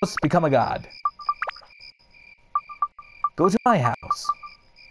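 Short electronic beeps blip in quick succession.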